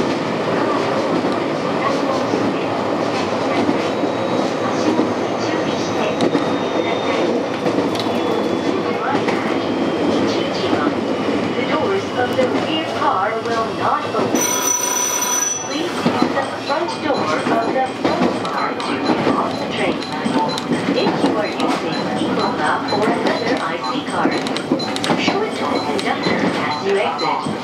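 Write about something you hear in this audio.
A train rumbles steadily along the tracks, wheels clattering on the rails.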